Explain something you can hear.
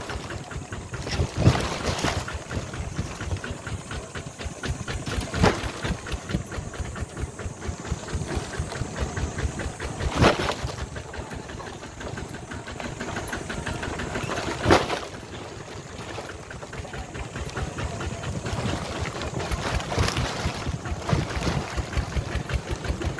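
A small tractor engine putters and chugs steadily.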